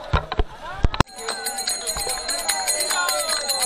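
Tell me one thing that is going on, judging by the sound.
A man chants loudly into a microphone over loudspeakers.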